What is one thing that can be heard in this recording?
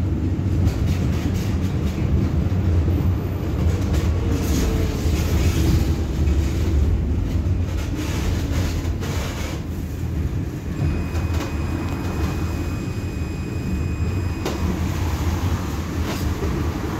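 Car tyres hiss on a wet road.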